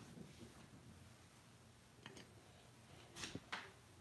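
A hard plastic card case clacks as it is set down on a stand.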